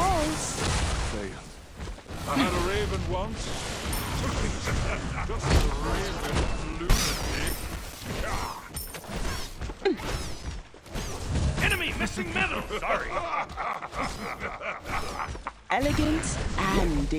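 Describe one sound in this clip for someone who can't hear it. Magic spells whoosh and crackle in quick bursts.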